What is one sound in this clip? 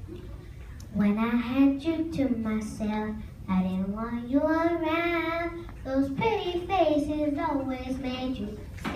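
A young girl sings into a microphone, heard through loudspeakers in an echoing hall.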